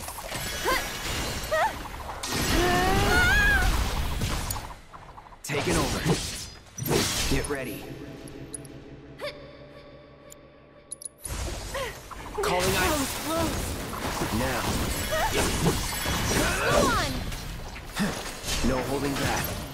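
Sword slashes and hits crash in a fast fight.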